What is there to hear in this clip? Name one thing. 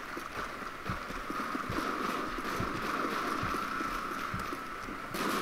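Footsteps thud at a steady running pace.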